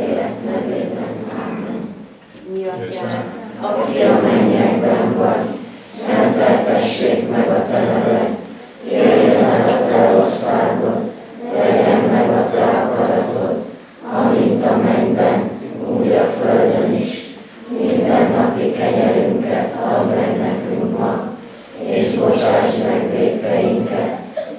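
A group of people sings in phrases, with short pauses between them.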